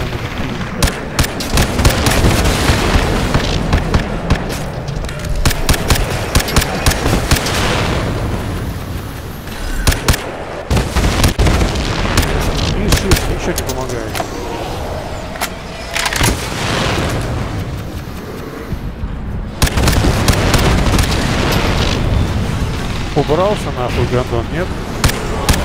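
Heavy explosions boom and rumble.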